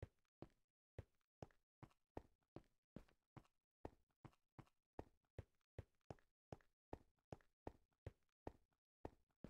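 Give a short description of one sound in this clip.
Footsteps tread steadily on stone at a quick walking pace.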